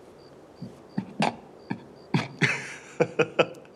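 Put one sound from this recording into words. A man chuckles briefly.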